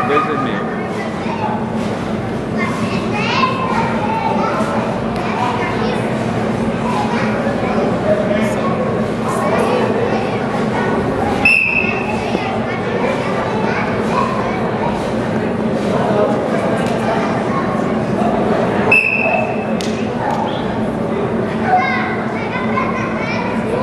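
A crowd of spectators chatters steadily in a large echoing hall.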